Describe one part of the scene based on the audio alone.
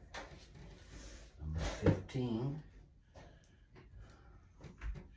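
Wooden boards knock and clatter against each other.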